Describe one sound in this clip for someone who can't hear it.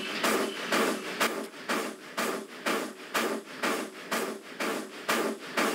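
A steam locomotive chuffs in quick, steady, rhythmic bursts.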